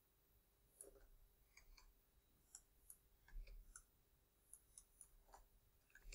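A pickaxe chips and breaks stone blocks in short, dry crunches.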